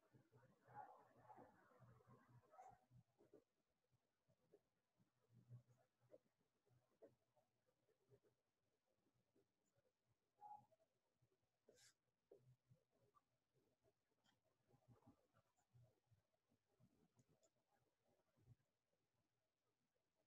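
A young woman speaks softly and quietly, close to a microphone.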